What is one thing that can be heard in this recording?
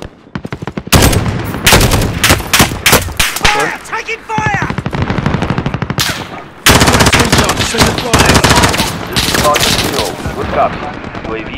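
Gunshots crack in rapid bursts nearby.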